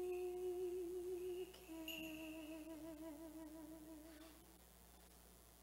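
A man chants in a long, wavering sung tone in a large echoing hall.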